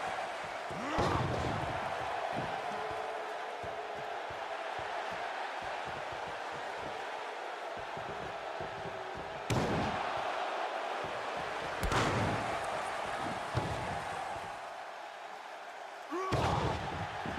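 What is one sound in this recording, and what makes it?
Wrestlers' bodies slam heavily onto the ring mat.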